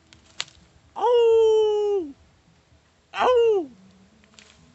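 A man lets out two loud, drawn-out high calls close by.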